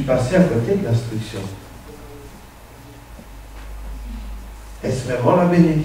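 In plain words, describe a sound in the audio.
A young man speaks calmly through a microphone, heard over loudspeakers in an echoing hall.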